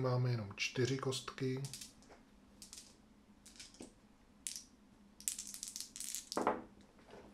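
Small plastic dice click together as a hand gathers them up.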